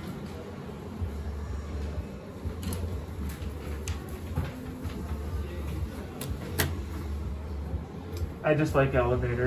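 An elevator hums low and steadily as it moves.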